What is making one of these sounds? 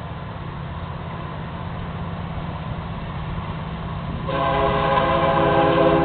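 A distant train engine rumbles as it approaches.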